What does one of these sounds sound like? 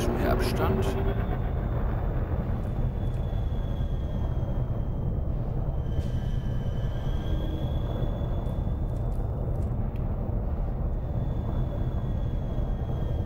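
A spacecraft engine hums with a low steady rumble.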